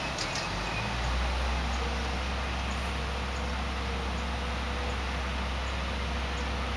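A pickup truck engine idles with a low rumble.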